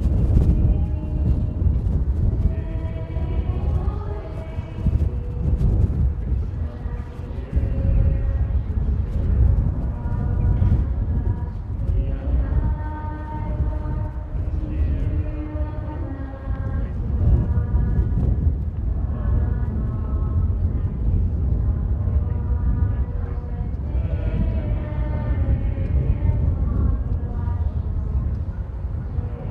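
A large crowd sings together in an open-air stadium.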